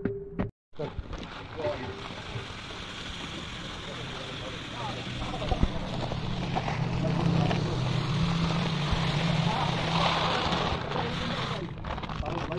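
Dry grains pour and patter into a tub of water.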